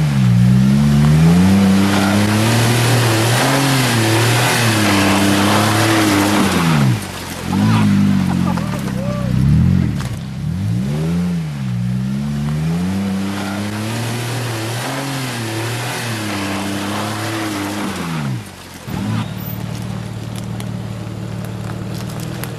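An off-road vehicle's engine revs up and down.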